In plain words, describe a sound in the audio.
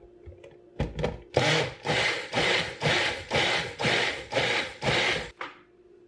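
A blender roars in short bursts as it is pulsed.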